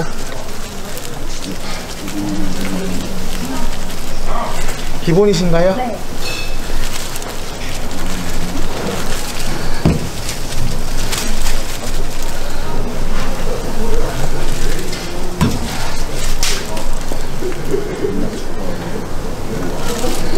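A squeeze bottle squirts and sputters sauce.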